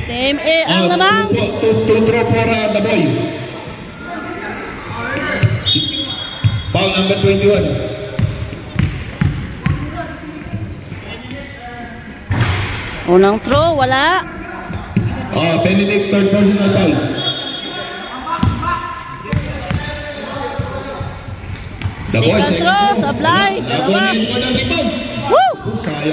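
Young men talk and call out loudly in a large echoing hall.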